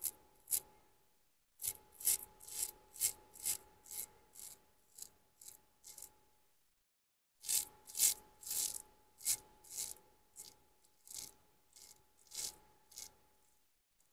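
A razor scrapes through stubble in short strokes.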